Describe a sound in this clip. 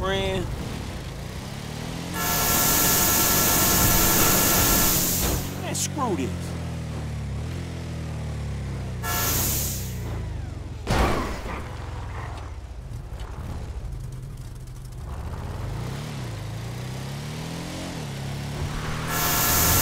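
A race car engine roars and revs up and down.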